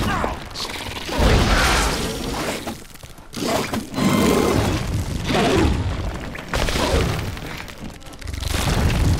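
A sword swings and clashes in a fight.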